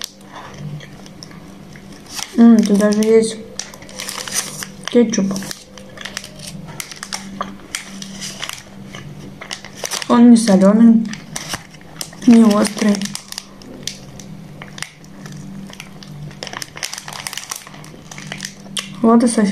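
A young woman chews and munches food close by.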